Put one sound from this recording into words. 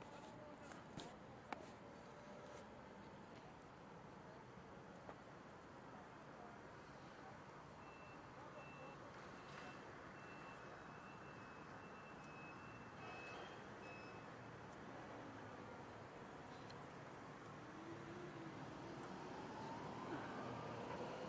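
Distant city traffic hums steadily outdoors.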